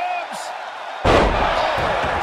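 A wrestler slams onto the mat with a heavy thud.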